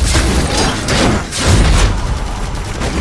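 Fiery blasts explode in bursts.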